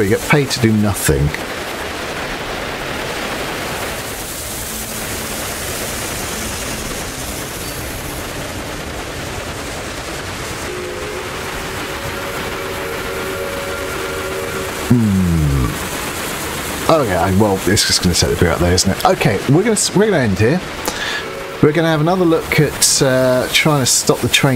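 A steam locomotive chugs along and hisses steam.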